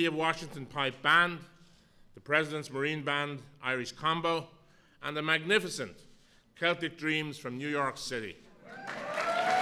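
A middle-aged man speaks calmly into a microphone, heard through loudspeakers in a large room.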